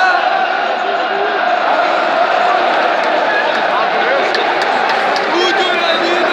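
A large stadium crowd chants and sings loudly, echoing all around.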